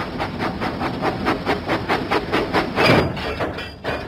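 A small steam engine chuffs steadily along the track.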